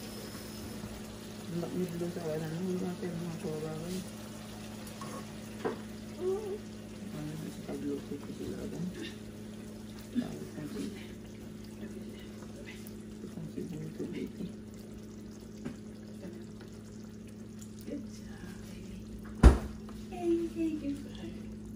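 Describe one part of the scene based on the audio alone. Sauce sizzles and bubbles in a pan.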